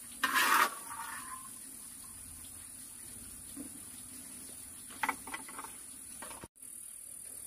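Peanuts rattle as they are tipped into a bowl.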